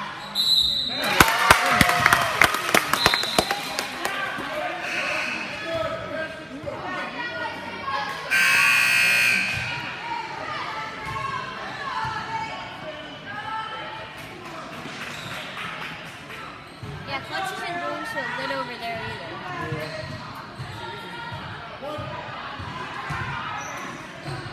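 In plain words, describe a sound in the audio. A crowd of men and women chatters in a large echoing gym.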